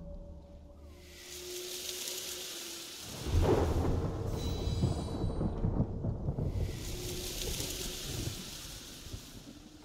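A soft magical shimmer rises and fades.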